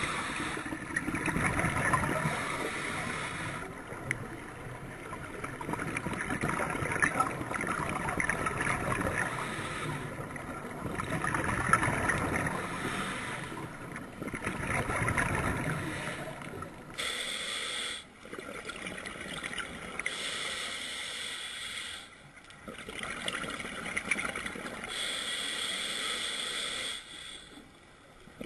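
Exhaled air bubbles rush and gurgle underwater.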